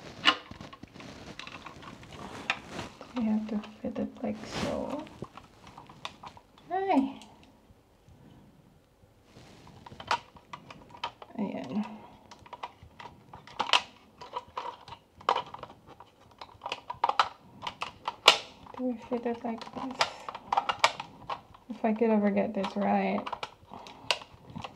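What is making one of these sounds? Plastic packaging crinkles and rustles in a woman's hands.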